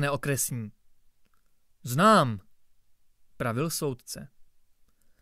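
A young man reads aloud close to a microphone, with expressive pauses.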